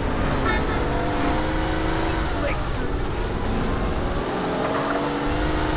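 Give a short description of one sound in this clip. A car engine roars steadily as the car speeds along.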